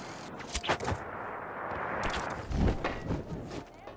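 A body lands with a heavy thud.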